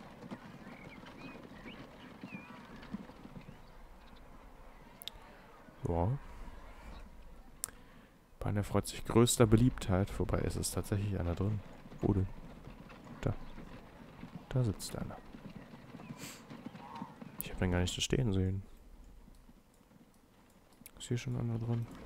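A horse-drawn tram rolls along rails.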